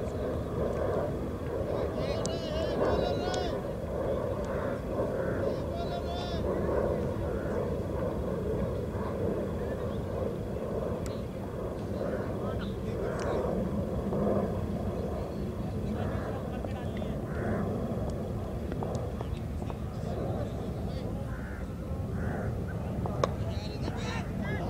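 Wind blusters steadily across an open outdoor space.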